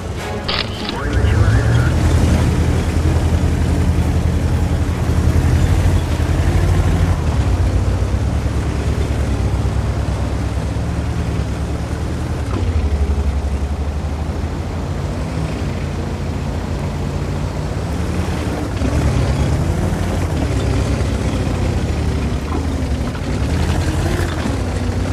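A tank engine roars and rumbles as the tank drives off.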